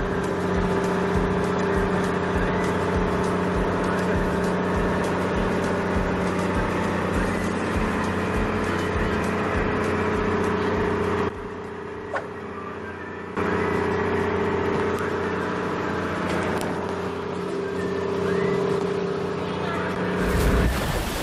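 A boat engine drones steadily.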